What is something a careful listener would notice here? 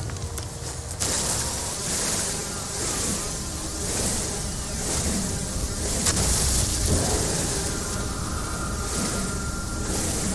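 A laser beam hums and crackles steadily.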